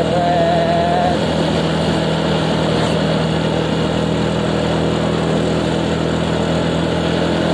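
A motorcycle engine hums steadily while riding.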